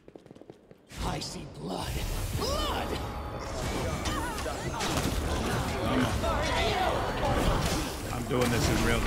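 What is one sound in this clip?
Magic blasts crackle and boom in a fierce battle.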